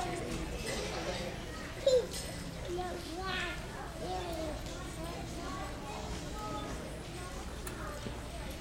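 Young children chatter and call out in a large echoing hall.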